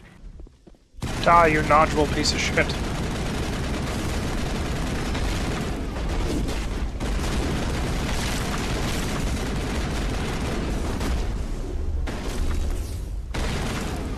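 Rapid gunfire rattles and bursts loudly.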